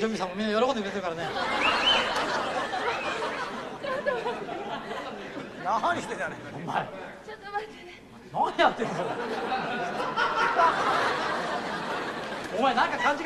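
A studio audience of young women shrieks and laughs loudly.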